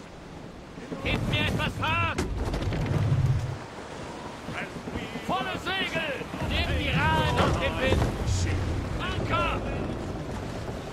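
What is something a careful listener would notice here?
Men sing together loudly.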